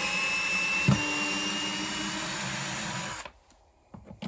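A cordless drill whirs steadily, driving a screw into wood, then stops.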